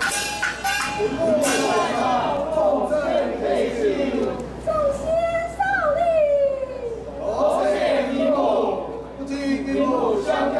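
Women sing together in high, wavering voices.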